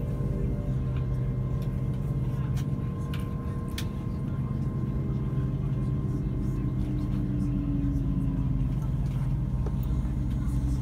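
Wheels click and clatter over rail joints.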